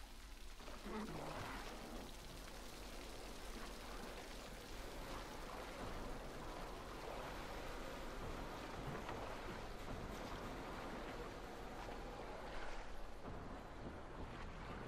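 Water laps softly against a small wooden boat.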